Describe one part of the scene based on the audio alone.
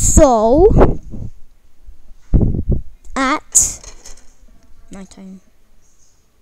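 A woman speaks with animation close by.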